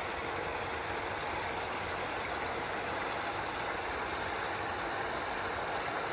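Water trickles steadily over the edge of a pool.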